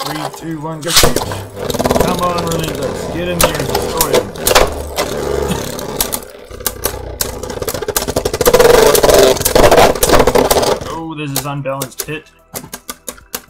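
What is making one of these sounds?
Spinning tops whir and clack against each other in a plastic bowl.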